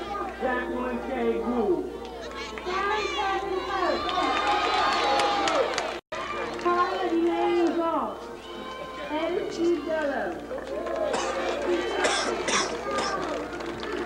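A crowd of young people sings together outdoors.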